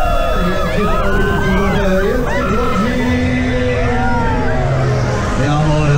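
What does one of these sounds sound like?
Young people on a fairground ride scream and shriek with excitement.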